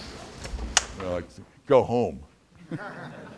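An elderly man laughs.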